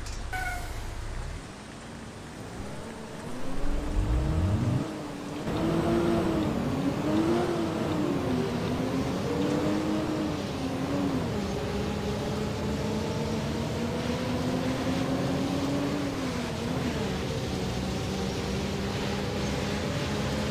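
A bus engine hums and revs up and down as it drives.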